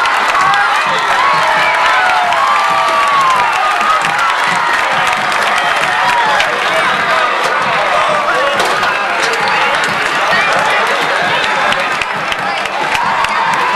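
Teenage boys shout and whoop in celebration.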